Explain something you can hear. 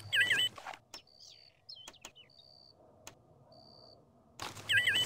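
Short electronic beeps sound now and then.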